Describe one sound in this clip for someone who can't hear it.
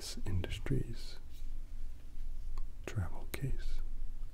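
Small plastic figures click and rattle in a hand.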